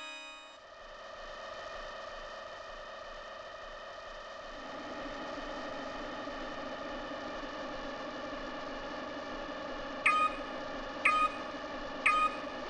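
Futuristic racing engines hum steadily, growing louder.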